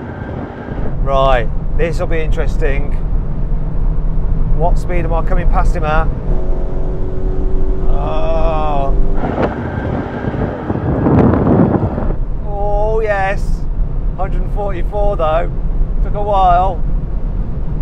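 A man talks excitedly from inside a car.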